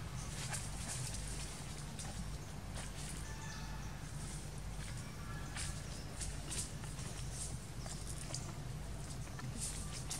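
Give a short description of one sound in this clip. A monkey crunches and chews on food.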